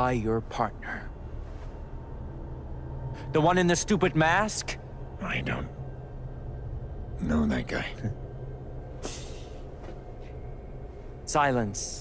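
A young man speaks with a mocking tone, close by.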